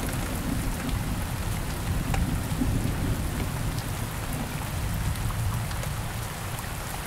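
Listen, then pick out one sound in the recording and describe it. Thunder rumbles low and fades.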